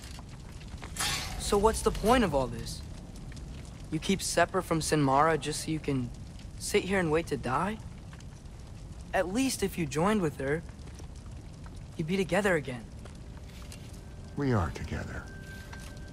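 A man speaks slowly in a deep, rough voice.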